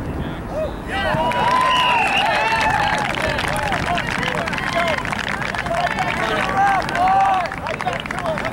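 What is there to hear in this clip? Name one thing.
A crowd of spectators cheers and shouts from a distance.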